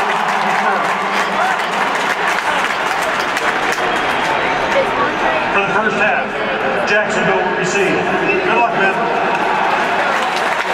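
Men talk nearby over the crowd noise.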